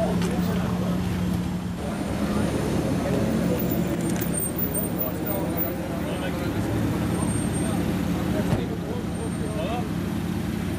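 A sports car engine idles with a deep, steady rumble.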